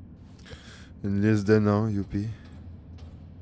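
A man speaks loudly and briefly into a close microphone.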